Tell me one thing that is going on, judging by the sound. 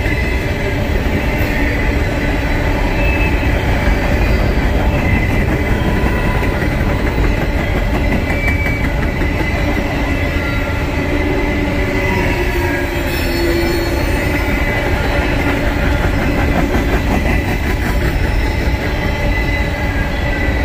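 Freight cars rumble and clatter steadily along the rails close by.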